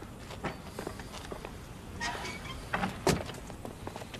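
A car door shuts.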